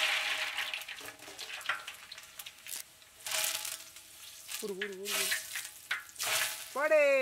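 Hot oil sizzles and crackles in a pot.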